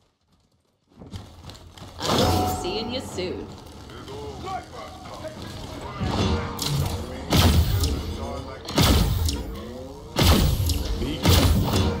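A game's weapon fires loud energy blasts in quick bursts.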